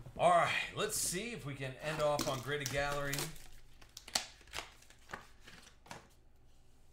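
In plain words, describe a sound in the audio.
Packs clatter softly as they are stacked.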